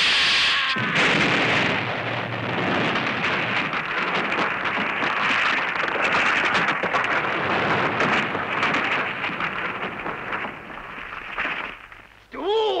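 Rocks tumble and crash down a slope with a loud rumble.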